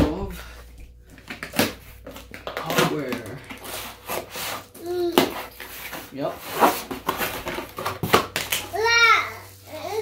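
A cardboard box rustles and scrapes as it is opened.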